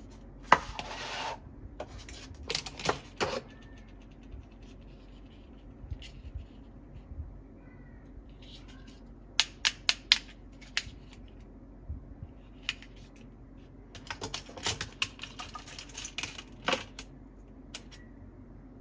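Plastic toy pieces click and clatter as hands handle them.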